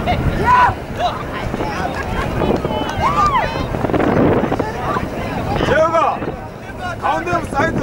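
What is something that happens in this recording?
Young players shout and call out to each other across an open field.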